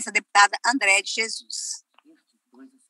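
A woman speaks loudly through an online call.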